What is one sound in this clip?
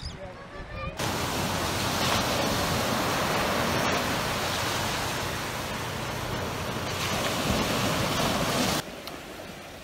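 Small waves wash gently onto the shore.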